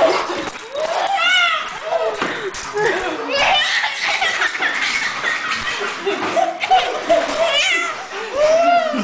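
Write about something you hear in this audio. A baby squeals with high cries.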